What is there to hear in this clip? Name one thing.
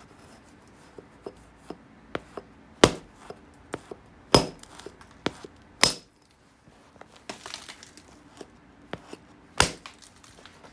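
An antler billet strikes a stone with sharp clicks.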